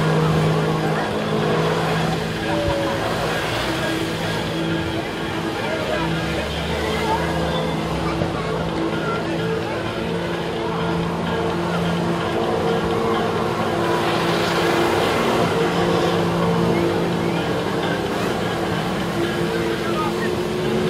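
A personal watercraft engine drones under load, its pitch wavering.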